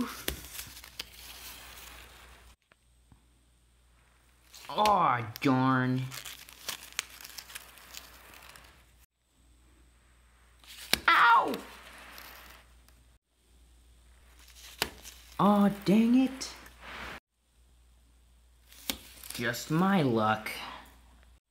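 Stiff paper stickers crinkle and tap as a hand handles them.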